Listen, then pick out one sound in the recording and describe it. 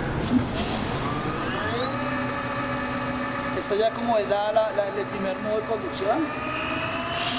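An electric motor whines, rising in pitch and then holding steady.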